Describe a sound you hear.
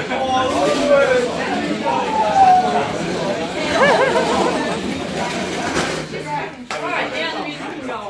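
A crowd of young men chatters and shouts loudly all around.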